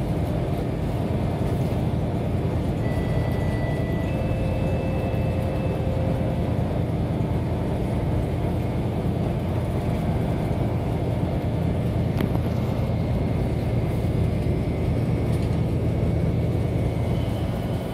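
Tyres hum on the road beneath a moving bus.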